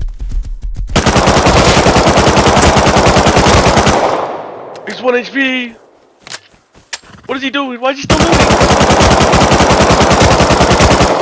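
A rifle fires in rapid automatic bursts close by.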